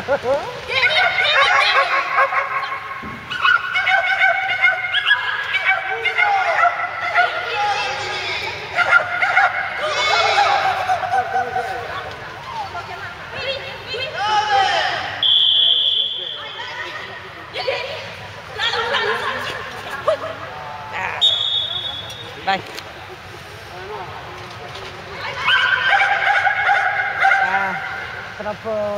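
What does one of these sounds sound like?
A young woman calls out commands loudly with animation in a large echoing hall.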